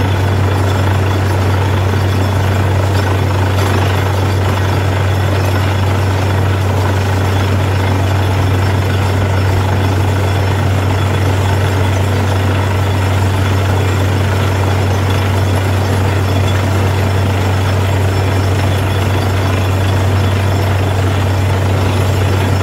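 A drilling rig's engine roars steadily close by.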